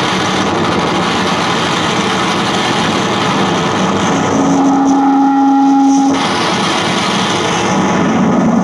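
A guitar is scraped and struck, making harsh noise.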